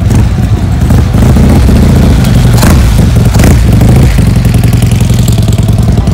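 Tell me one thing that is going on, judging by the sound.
A motorcycle engine idles loudly with a deep, throbbing rumble.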